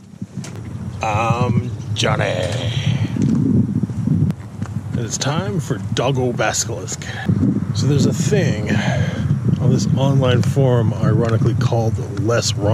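A man talks up close and with animation, outdoors.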